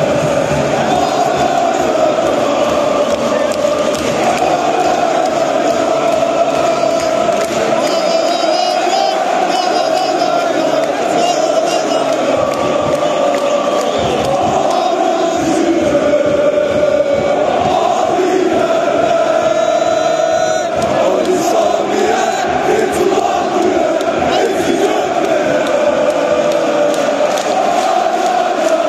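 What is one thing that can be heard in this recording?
A huge crowd chants and sings loudly in unison in a large open stadium.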